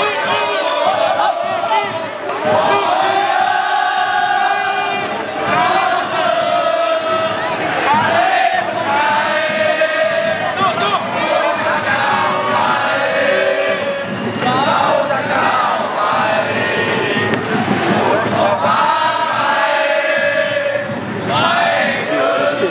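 A group of young men sings along together close by.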